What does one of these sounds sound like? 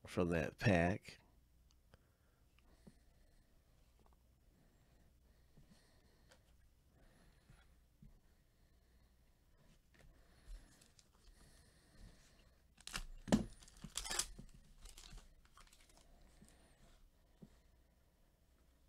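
Trading cards slide and tap against each other.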